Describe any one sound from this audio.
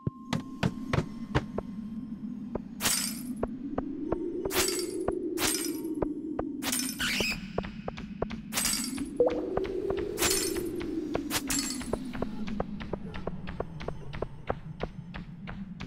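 Footsteps patter quickly on hard stone.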